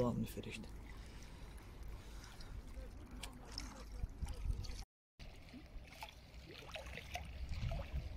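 Water laps gently against a boat.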